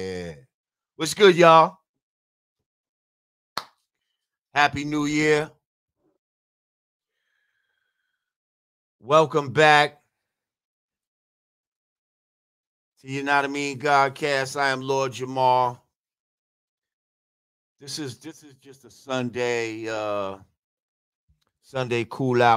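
A man speaks with animation into a close microphone, in bursts with pauses.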